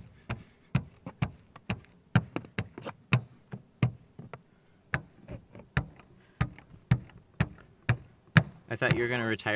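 A plastic scraper clicks and scrapes against a car window.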